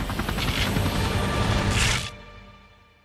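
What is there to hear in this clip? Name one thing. A spaceship roars past.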